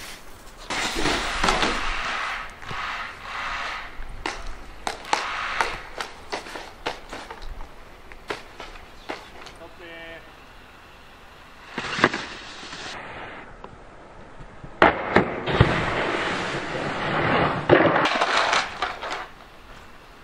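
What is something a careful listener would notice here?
A snowboard scrapes and hisses across packed snow.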